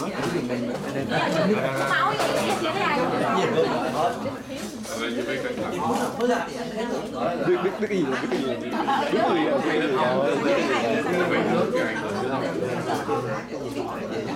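An elderly man talks warmly up close.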